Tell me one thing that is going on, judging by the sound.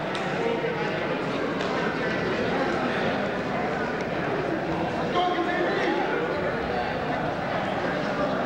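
Wrestlers' shoes squeak on a mat.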